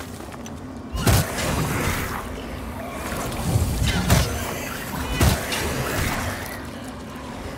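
Magic bursts crackle and boom.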